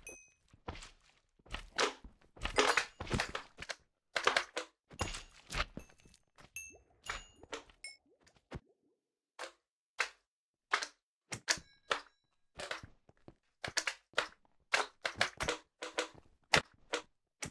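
A sword strikes with quick swishing hits.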